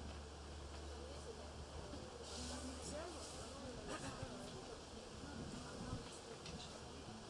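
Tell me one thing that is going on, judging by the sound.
An elderly woman talks with animation nearby.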